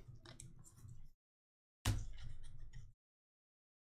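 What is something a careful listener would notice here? Cardboard cards slide and tap against each other.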